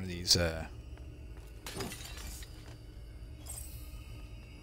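Clay pots shatter with a crunch.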